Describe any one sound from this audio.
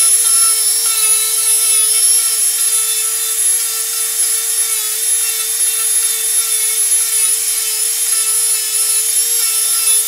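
A small rotary tool whines at high speed as it grinds into wood.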